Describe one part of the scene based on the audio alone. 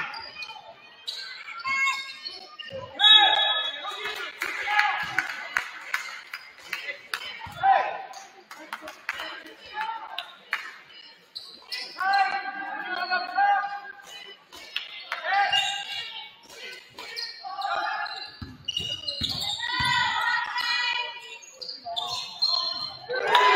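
Young women shout to each other across an echoing gym.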